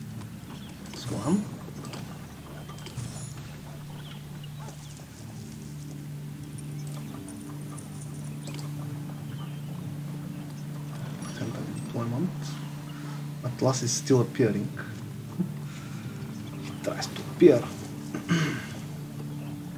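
A man speaks now and then, close to a microphone.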